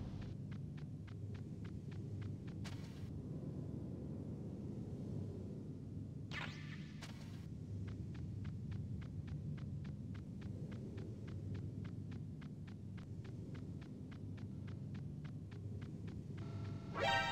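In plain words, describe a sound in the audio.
Quick footsteps crunch steadily on snow.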